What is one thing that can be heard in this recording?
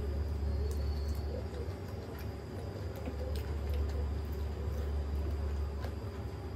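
A woman chews food noisily close to a microphone.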